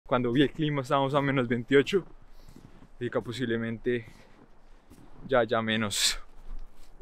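A young man talks casually close up.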